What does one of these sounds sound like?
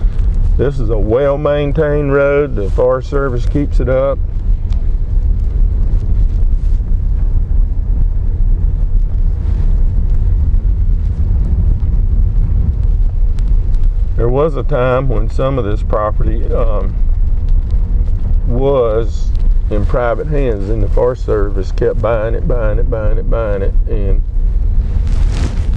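A car engine rumbles steadily from inside the car.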